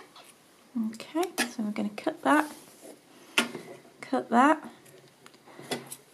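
Scissors snip through thread.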